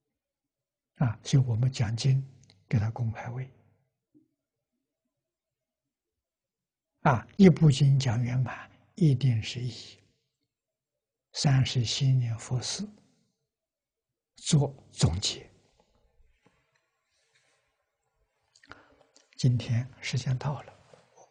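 An elderly man speaks calmly in phrases with pauses, close to a clip-on microphone.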